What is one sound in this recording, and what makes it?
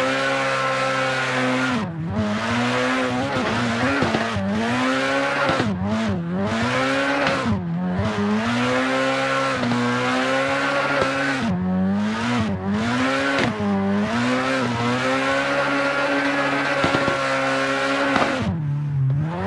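A car engine roars loudly, its pitch rising and dipping as the revs change.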